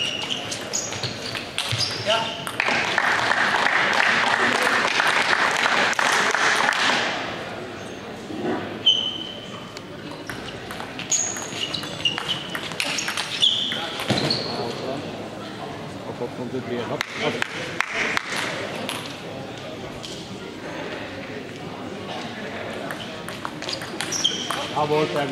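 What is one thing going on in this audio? A table tennis ball clicks back and forth between paddles and table in an echoing sports hall.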